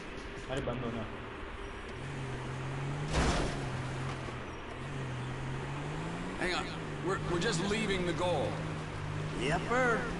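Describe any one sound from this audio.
A car engine hums steadily and revs as the vehicle pulls away.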